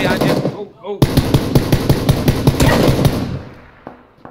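A scoped rifle fires a shot that echoes.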